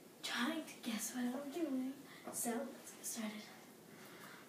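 A young girl speaks cheerfully close by.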